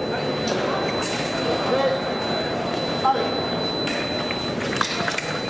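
Many voices murmur in a large echoing hall.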